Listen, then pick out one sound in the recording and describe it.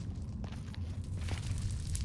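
Lava pops and bubbles.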